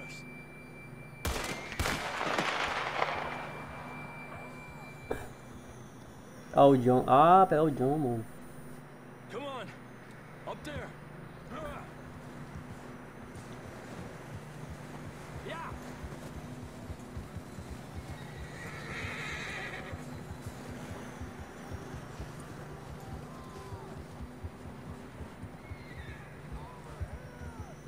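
Horses trudge through deep snow.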